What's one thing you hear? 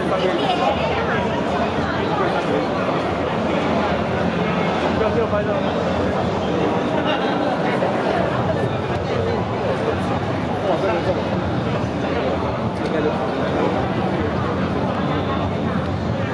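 A crowd of young women and men chatters nearby in a steady murmur.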